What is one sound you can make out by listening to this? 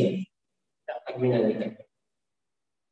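A man speaks briefly into a microphone, heard over an online call.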